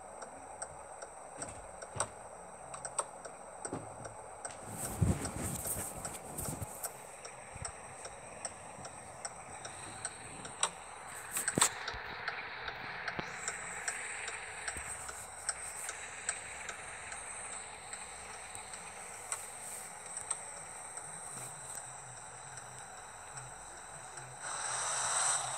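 A truck's diesel engine idles with a low rumble.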